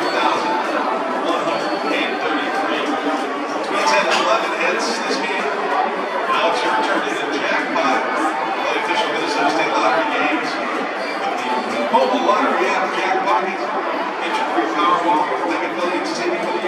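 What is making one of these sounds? A stadium crowd murmurs and chatters steadily.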